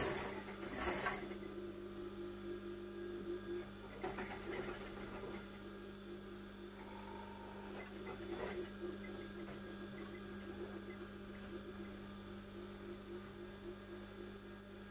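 A sewing machine hums and whirs steadily as it stitches.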